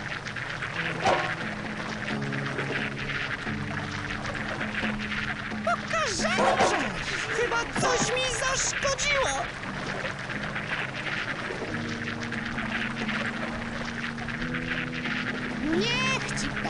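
Retro game music plays steadily.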